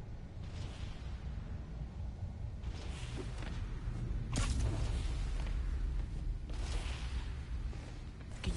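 A line zips and whooshes through the air in quick bursts.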